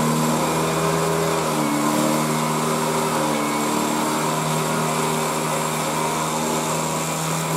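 A small motorcycle engine runs steadily at idle close by.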